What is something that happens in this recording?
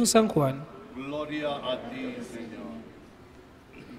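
A man speaks loudly through a microphone in a large echoing hall.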